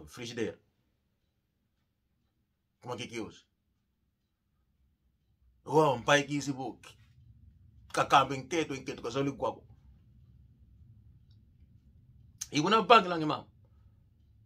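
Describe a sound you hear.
A middle-aged man speaks close by in short, emphatic bursts with long pauses.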